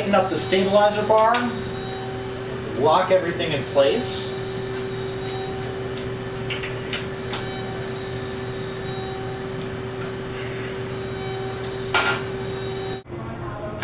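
A metal frame clanks as a man handles it.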